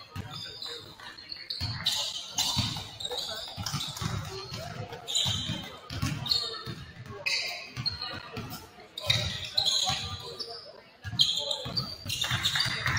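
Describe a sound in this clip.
A basketball bounces on the court with dull thumps.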